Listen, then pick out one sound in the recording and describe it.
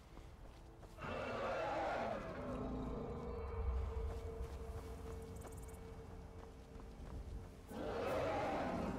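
A dragon roars in the distance.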